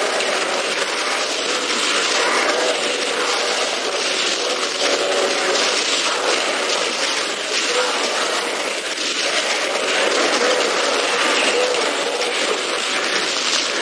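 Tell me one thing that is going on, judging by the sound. Fiery explosions roar in a video game.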